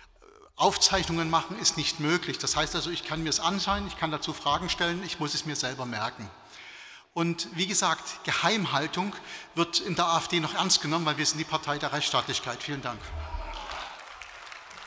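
A middle-aged man speaks firmly into a microphone in a large hall.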